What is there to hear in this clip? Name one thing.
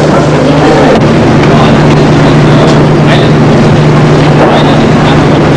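A crowd of men and women chatter nearby.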